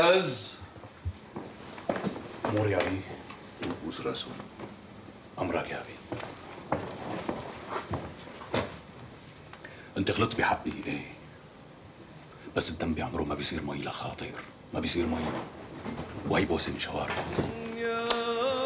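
Men talk with emotion close by.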